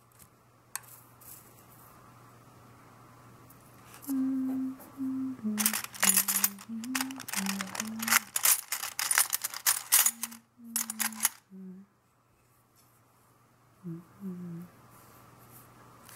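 A metal spoon scrapes and rustles through dry tea leaves.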